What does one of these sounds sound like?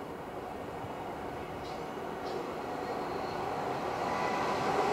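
A train approaches from a distance, growing louder.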